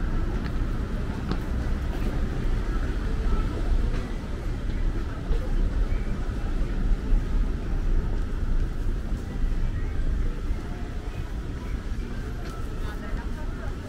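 Traffic rumbles along a busy city street outdoors.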